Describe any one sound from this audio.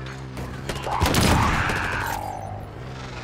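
Gunfire bursts with a loud blast.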